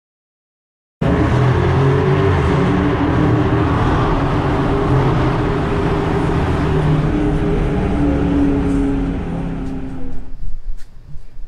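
A car engine roars loudly as it drives through an echoing tunnel.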